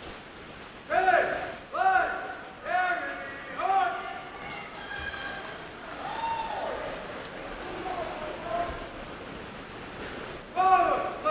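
A man shouts drill commands that echo through a large hall.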